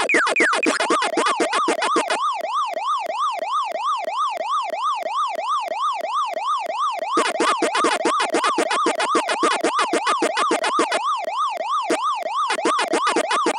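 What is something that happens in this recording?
A siren-like electronic tone wails up and down steadily.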